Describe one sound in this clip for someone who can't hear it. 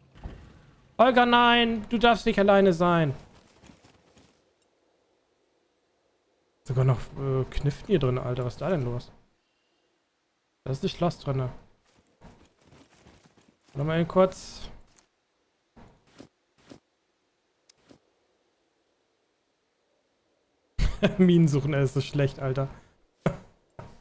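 A man talks with animation, close to a microphone, in short bursts.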